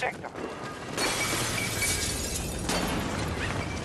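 Glass shatters and crashes down.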